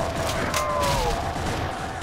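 Footsteps thud on stairs.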